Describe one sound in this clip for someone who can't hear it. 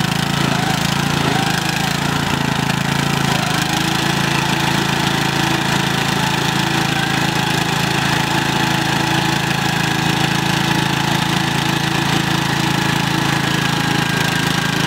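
A riding lawn mower engine strains at full throttle.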